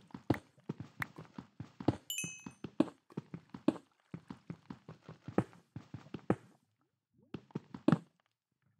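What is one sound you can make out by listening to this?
Stone blocks crack and thud in quick repeated blows as they are mined.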